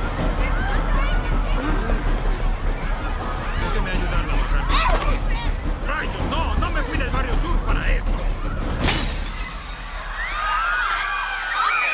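A crowd of young people shouts and screams chaotically.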